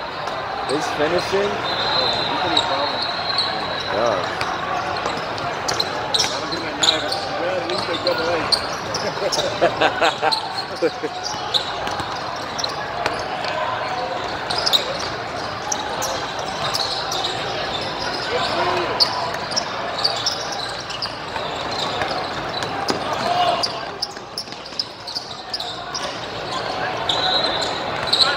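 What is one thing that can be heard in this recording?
Basketballs bounce on a hard court in a large echoing hall.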